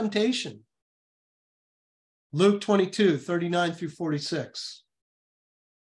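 A middle-aged man speaks calmly through a microphone on an online call.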